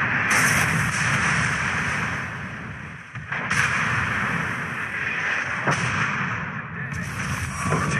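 Shells splash into the water.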